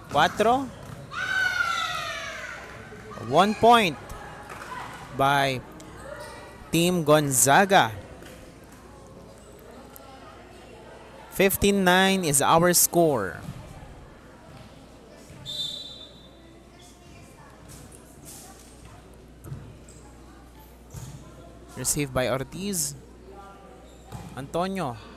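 Young women shout and cheer in an echoing hall.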